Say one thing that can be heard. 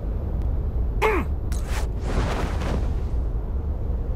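A parachute snaps open with a whoosh.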